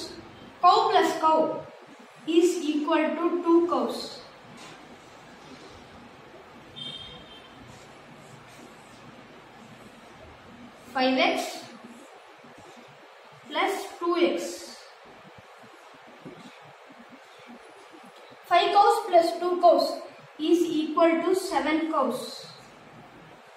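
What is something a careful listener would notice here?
A young boy speaks calmly and clearly, close by, in short bursts.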